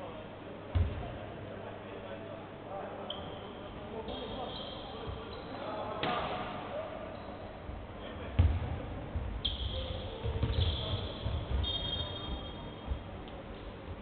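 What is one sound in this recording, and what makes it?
A basketball bounces with dull thumps on the floor.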